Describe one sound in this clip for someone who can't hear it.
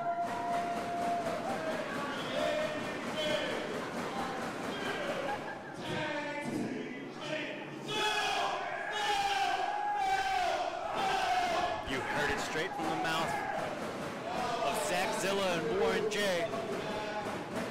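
A young man speaks with animation into a microphone through loudspeakers in a large echoing hall.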